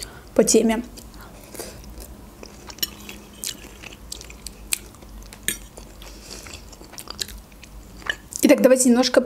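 A young woman chews food wetly and close to a microphone.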